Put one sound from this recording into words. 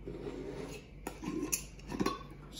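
A glass jar knocks down onto a hard tabletop.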